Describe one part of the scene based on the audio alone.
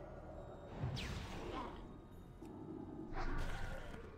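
Magic spells crackle and strike during a fight.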